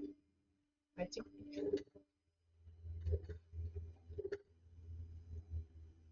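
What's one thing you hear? A metal drawer slides and rattles.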